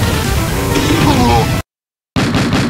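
A loud explosion booms in a game.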